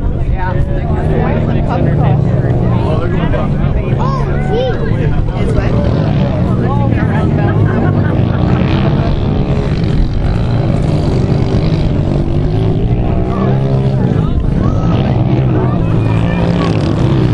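Small dirt bike engines buzz and rev as the bikes ride over rough ground.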